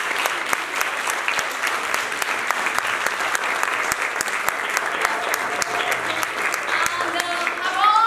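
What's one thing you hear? An audience applauds with steady clapping.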